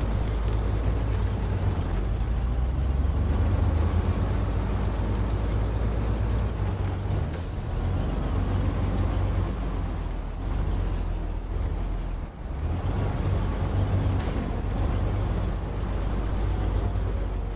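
A heavy truck engine rumbles and strains.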